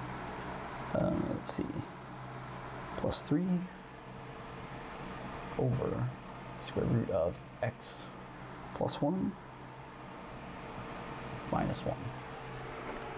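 A man speaks calmly, in short phrases, close to a microphone.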